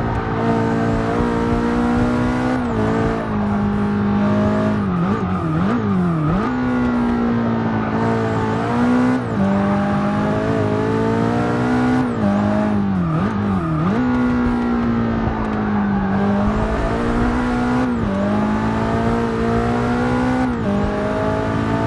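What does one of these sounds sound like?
A racing car engine roars loudly, revving up and dropping as the gears shift.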